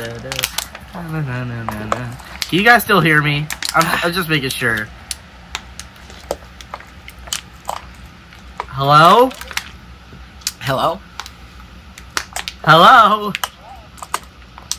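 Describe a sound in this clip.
A young woman gulps water from a plastic bottle.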